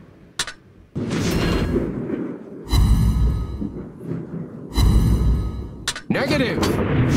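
Heavy naval guns boom in loud bursts.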